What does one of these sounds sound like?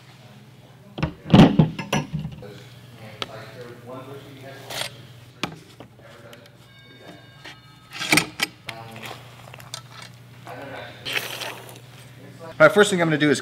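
Metal skewers scrape and clink against a wooden board.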